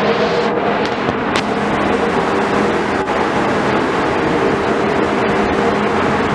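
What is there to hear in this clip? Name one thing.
A ship's engines hum and rumble steadily.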